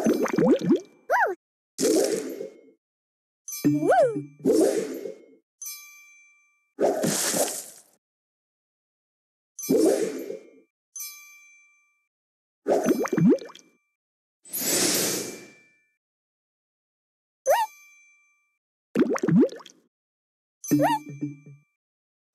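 Cartoon game pieces pop and chime in short bursts.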